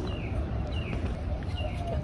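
Footsteps tap softly on pavement.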